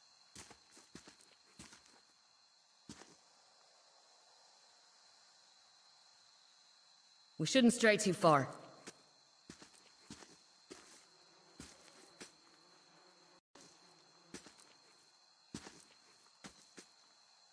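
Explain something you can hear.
Footsteps tap on hard ground at a walking pace.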